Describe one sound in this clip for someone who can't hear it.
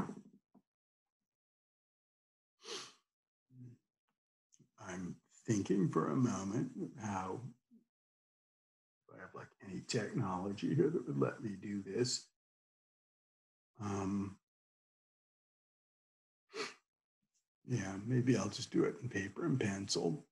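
A middle-aged man speaks calmly in pauses, close to a microphone.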